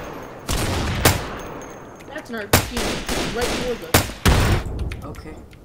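A rifle fires several loud, sharp shots with a short echo.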